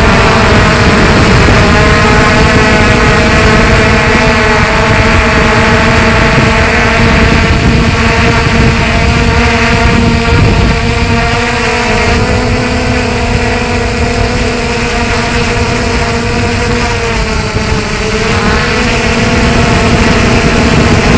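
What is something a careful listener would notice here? Drone propellers whine loudly and steadily up close.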